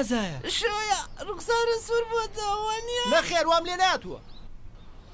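A young girl speaks in a strained, wavering voice.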